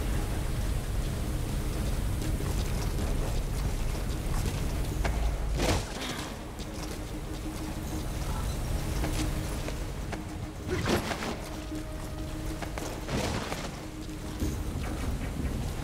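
Footsteps move quickly across a hard floor.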